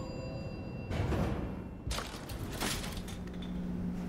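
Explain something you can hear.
Elevator doors slide open with a whoosh.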